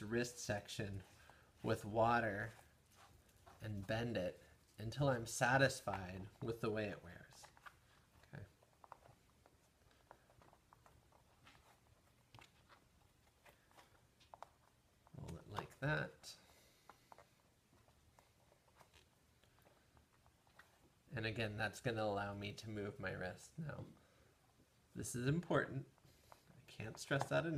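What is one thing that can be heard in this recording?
Stiff leather rustles and creaks as hands wrap it around an arm.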